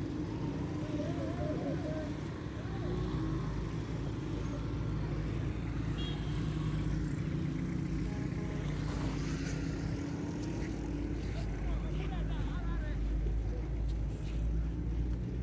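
Motorcycle engines hum as they pass along a road.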